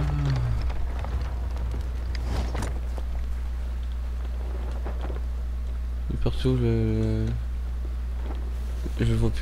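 Sea waves wash gently against a wooden ship.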